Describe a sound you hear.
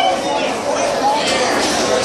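A young woman laughs and talks loudly close by.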